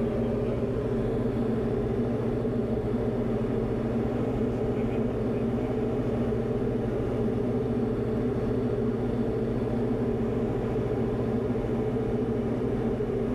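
A light aircraft engine drones steadily from inside the cabin.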